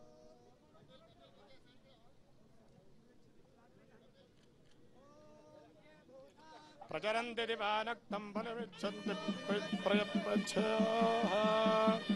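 A crowd murmurs nearby.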